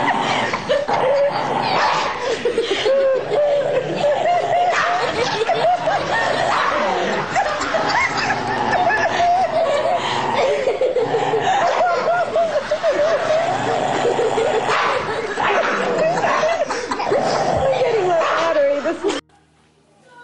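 A dog growls and whines playfully.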